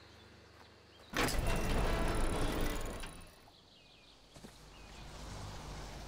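Heavy footsteps thud quickly on the ground.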